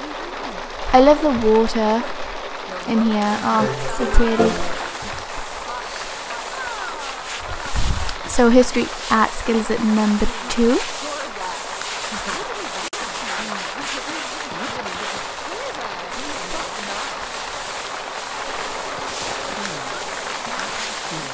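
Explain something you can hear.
Rain patters down steadily outdoors.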